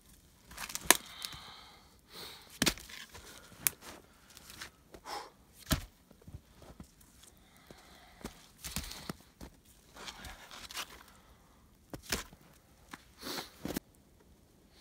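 Wooden sticks snap and crack as a man breaks them.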